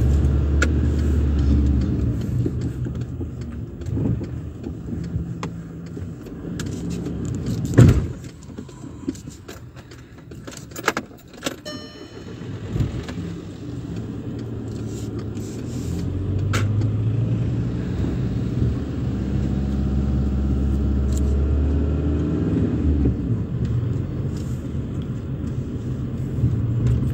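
A car engine hums low and steady from inside the car, rising and falling with speed.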